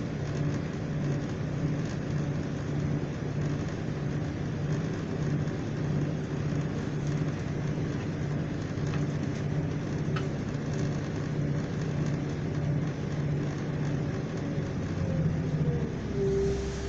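Train wheels clatter rhythmically over the rails.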